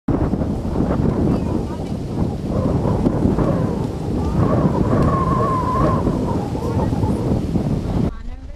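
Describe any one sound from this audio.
A woman speaks calmly at a distance.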